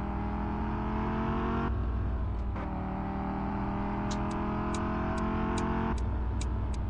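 A car engine revs steadily as the car speeds up, dropping in pitch as it shifts gear.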